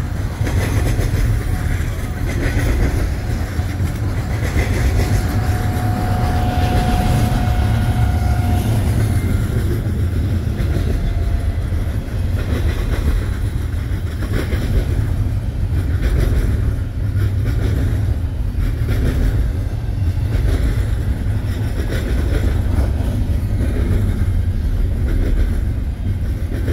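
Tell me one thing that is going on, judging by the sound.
Wheels clatter rhythmically over rail joints.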